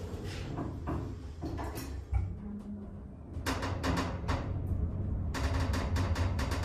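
An elevator car hums steadily as it moves.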